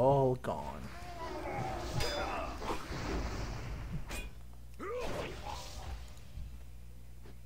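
Blades swish and clash in a fight.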